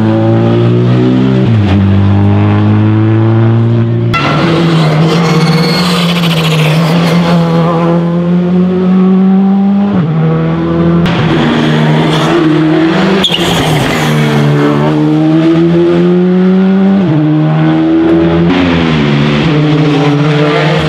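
Rally car engines roar loudly, revving up and down through gear changes.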